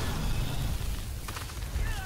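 A fiery explosion bursts with a deep roar.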